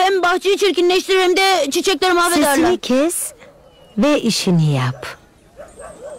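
A woman speaks firmly and clearly.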